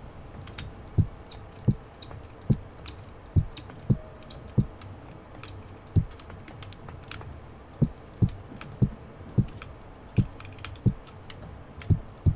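Footsteps thud steadily on wooden boards.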